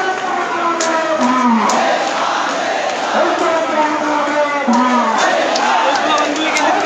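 A large crowd of young men shouts and chants loudly outdoors.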